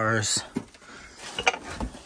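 A hand lifts a plastic case with a light scrape.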